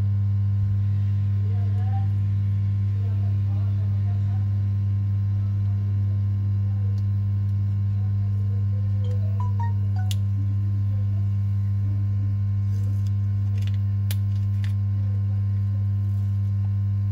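Small plastic parts click and tap as a phone is taken apart by hand.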